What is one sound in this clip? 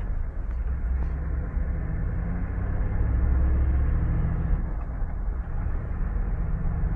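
Wind buffets loudly against a microphone on a moving car.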